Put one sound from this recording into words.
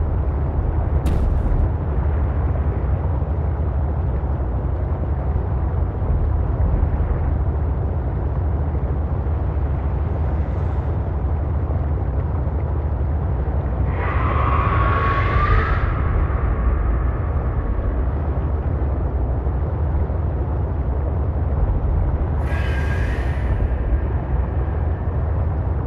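A deep underwater rumble drones steadily.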